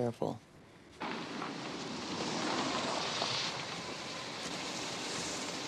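Rain falls steadily on a wet street outdoors.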